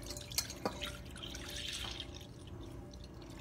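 Milk pours and splashes into a pot.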